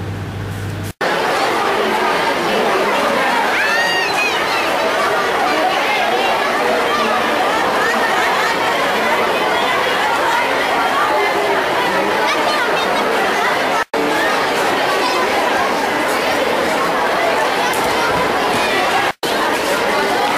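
A large crowd of children chatters and shouts outdoors.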